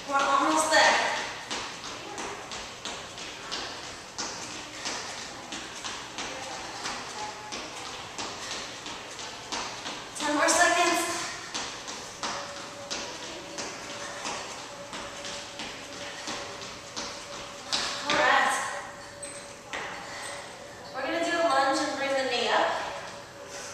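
A young woman speaks out loud with energy.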